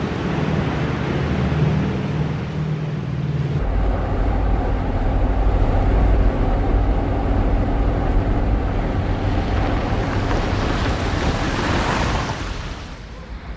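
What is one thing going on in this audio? A car engine hums steadily from inside a car.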